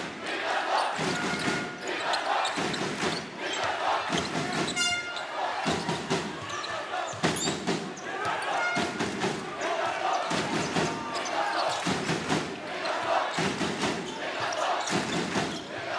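A large crowd cheers and chants in a rhythm, echoing through a big hall.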